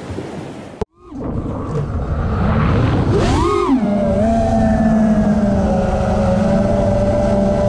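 A small drone's motors whine loudly and swoop up and down in pitch.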